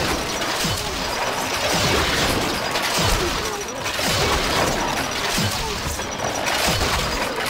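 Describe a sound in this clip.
Swords clash in a noisy battle.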